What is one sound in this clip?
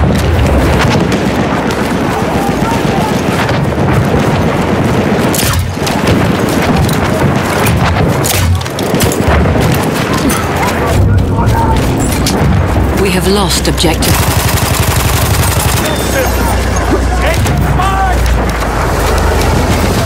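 Explosions and distant gunfire rumble throughout.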